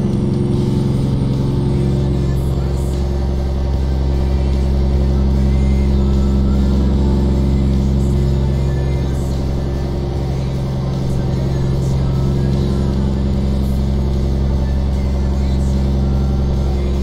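A truck's diesel engine drones steadily at a low pitch.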